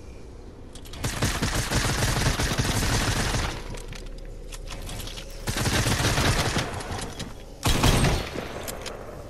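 Gunfire crackles in rapid, loud bursts.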